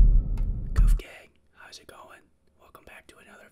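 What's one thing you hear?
A young man speaks casually and close to a microphone.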